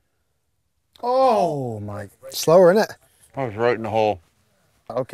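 A man groans loudly in dismay close by.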